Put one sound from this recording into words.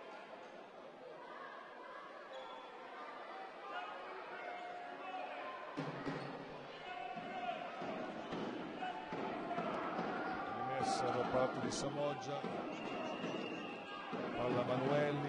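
Spectators murmur and call out in a large echoing gym.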